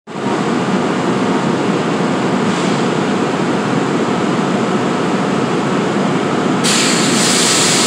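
A stopped train's engine rumbles steadily nearby.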